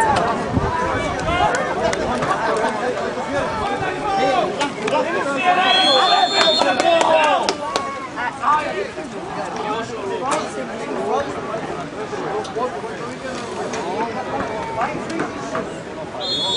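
Men talk and call out with animation nearby, outdoors.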